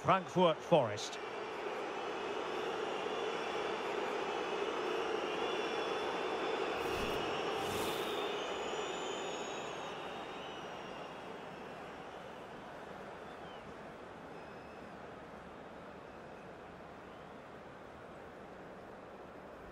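A large stadium crowd murmurs and cheers in the distance.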